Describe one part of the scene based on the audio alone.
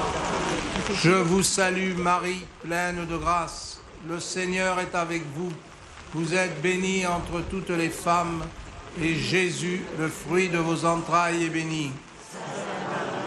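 An elderly man chants slowly into a microphone, heard through loudspeakers.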